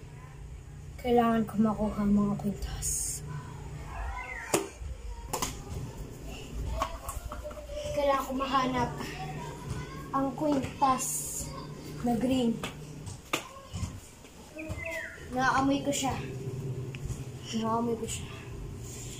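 A young boy talks calmly, close by.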